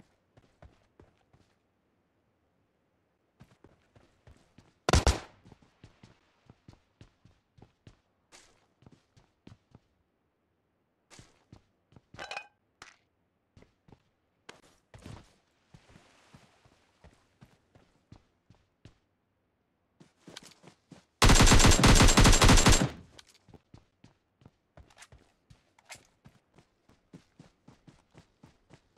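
Footsteps thud steadily on the ground and wooden floors.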